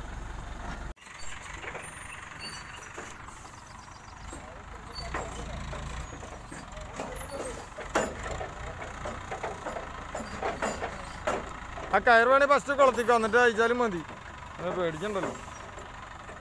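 A crane's diesel engine idles nearby.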